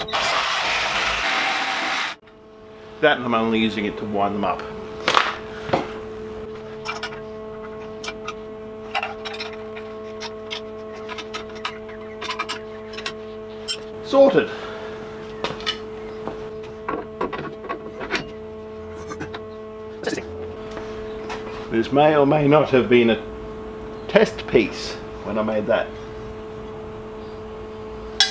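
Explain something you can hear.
Metal clanks and knocks as a tube bender is worked.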